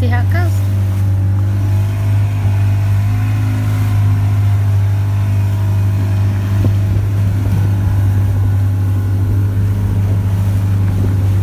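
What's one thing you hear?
Water splashes and churns against a boat's hull.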